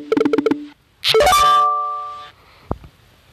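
A bright game jingle rings out.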